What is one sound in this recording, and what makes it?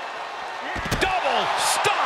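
A heavy stomp thuds on a body.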